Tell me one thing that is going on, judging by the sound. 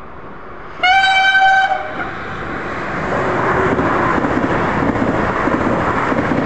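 A high-speed train rushes past with a rising roar of wind and wheels.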